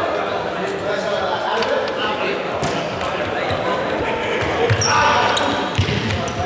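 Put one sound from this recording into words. Sneakers squeak and thud on a wooden floor as players run.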